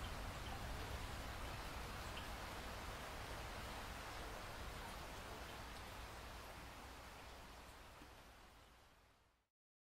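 Steady rain patters against a window and slowly fades away.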